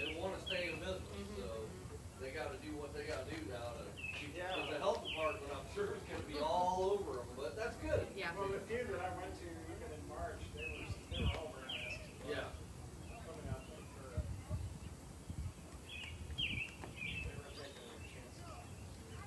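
A woman talks nearby outdoors.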